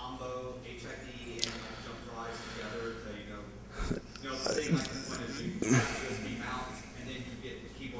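A man speaks calmly into a microphone, presenting.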